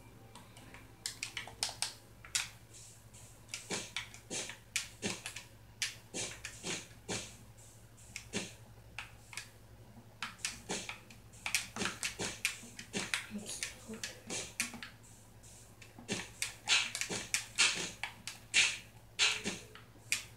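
Short, soft clicks of blocks being placed come again and again.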